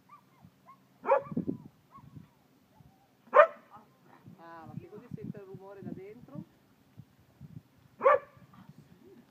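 A dog barks sharply a few times.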